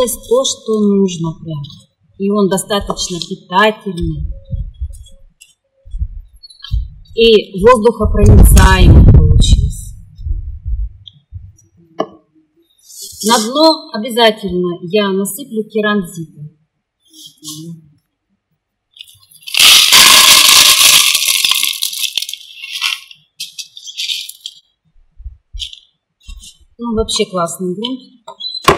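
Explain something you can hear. A small shovel scrapes through soil.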